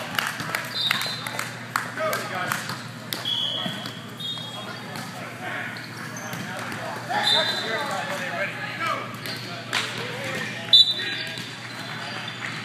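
Young men call out in a large echoing hall.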